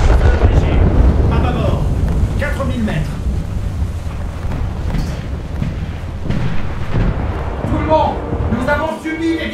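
Heavy guns boom with a deep, steady rumble.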